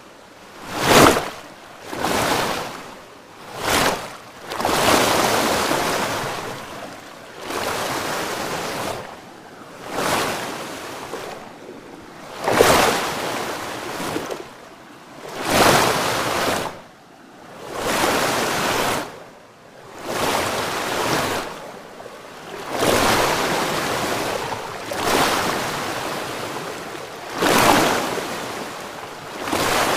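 Water swirls and splashes in surges.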